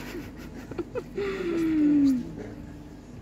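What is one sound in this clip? A man snarls loudly.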